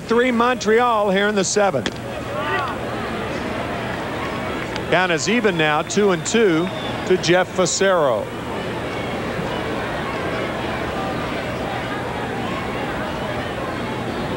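A crowd murmurs steadily in a large open stadium.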